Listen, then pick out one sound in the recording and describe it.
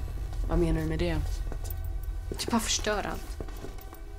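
A young woman speaks nearby in short bursts.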